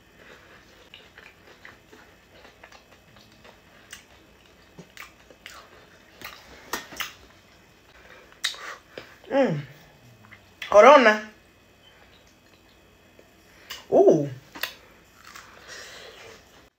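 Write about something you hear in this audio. A woman bites and chews crispy food.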